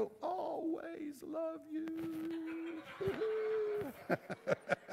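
An elderly man speaks slowly and earnestly into a microphone.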